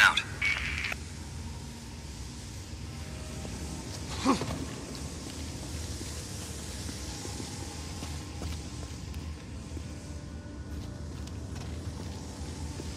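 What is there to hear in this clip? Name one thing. Footsteps crunch slowly on loose gravel.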